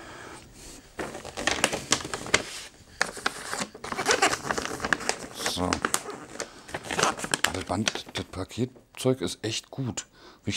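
Wrapping paper rustles and crinkles as it is torn open.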